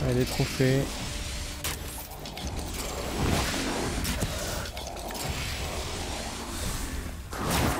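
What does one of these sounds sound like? Arrows whoosh as a bow fires them rapidly.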